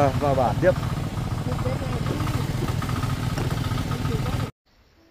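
A motorbike engine hums steadily nearby.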